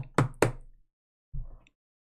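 Plastic card cases click and tap as hands handle them.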